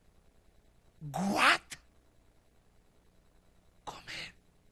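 A man shouts forcefully into a microphone.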